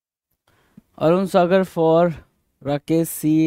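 A man speaks clearly and with animation, close to a microphone.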